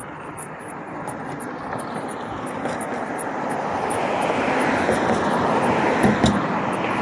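Cars drive past on a nearby road, growing louder as one comes close.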